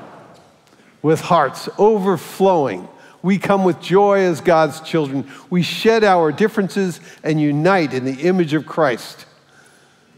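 An elderly man speaks with feeling into a microphone.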